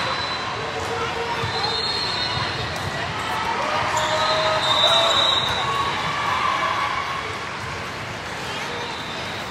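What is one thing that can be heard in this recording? A crowd of players and spectators chatters and calls out in a large echoing hall.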